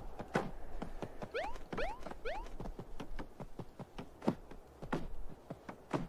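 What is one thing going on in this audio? A cartoon character's footsteps patter quickly.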